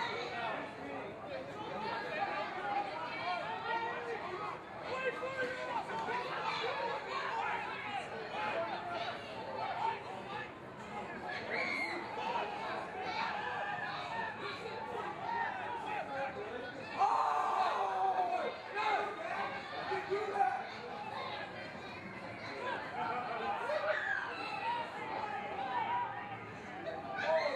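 Men shout and call out to each other across an open field, heard from a distance.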